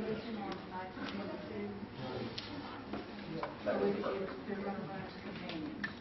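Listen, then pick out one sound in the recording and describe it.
Papers rustle as an elderly man turns pages.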